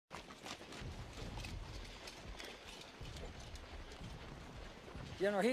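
Horses' hooves clop on a dirt road.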